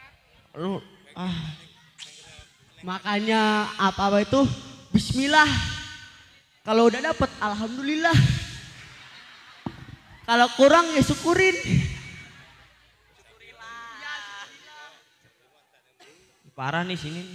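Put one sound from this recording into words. A boy speaks animatedly into a microphone, heard through loudspeakers.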